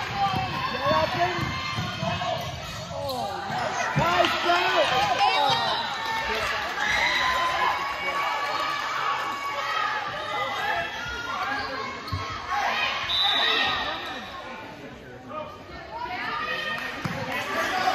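A crowd of spectators talks and cheers loudly in an echoing gym.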